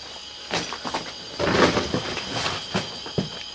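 A wooden door scrapes and knocks as it is pushed open.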